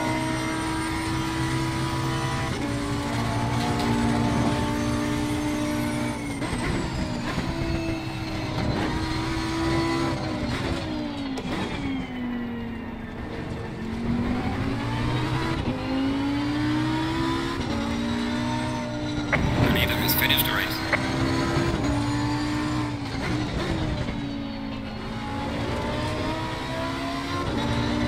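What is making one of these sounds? A racing car engine roars loudly, its pitch rising through the gears and dropping when braking.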